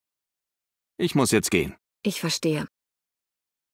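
A man speaks briefly in reply, close by.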